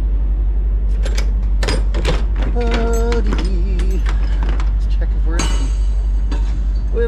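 Metal latches clank on a trailer door.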